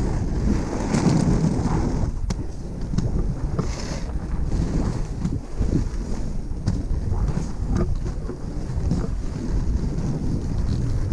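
Inline skate wheels roll and rumble over rough pavement.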